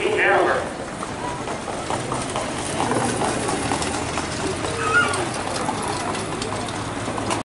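Spectators chatter nearby outdoors.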